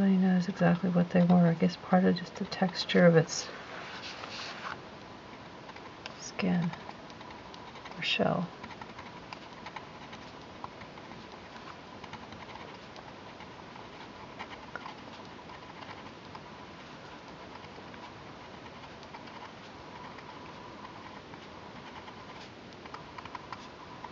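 A pencil taps softly on paper, dotting it again and again.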